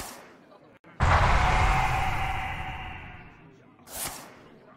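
A magical blast crackles and booms.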